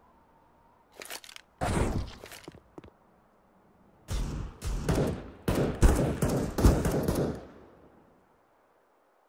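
Footsteps run on a hard floor.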